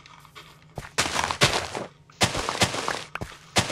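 A shovel digs into dirt with soft crunching scrapes.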